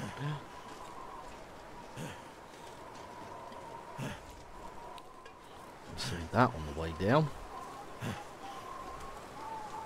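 Footsteps crunch through snow at a steady pace.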